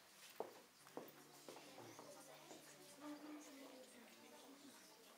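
Brass instruments play soft held notes.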